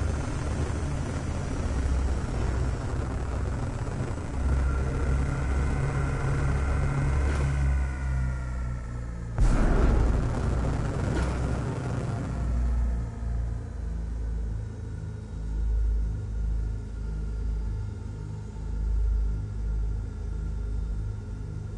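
A spaceship engine hums with a low, steady rumble.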